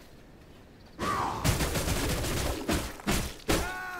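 Blades clash and strike in a fight, with sharp impacts.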